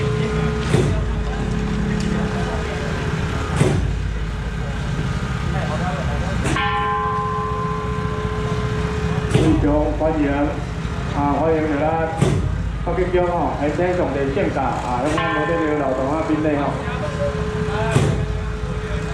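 Firecrackers bang sharply now and then.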